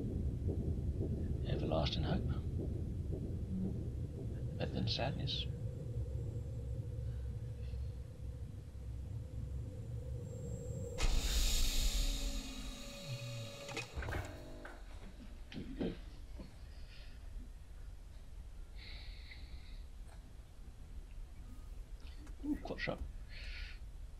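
A young man talks calmly and close into a microphone.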